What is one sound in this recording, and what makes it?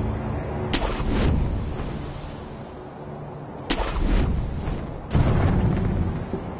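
Rushing water roars nearby.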